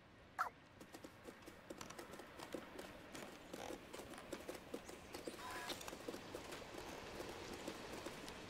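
A cat's paws patter softly on wooden boards.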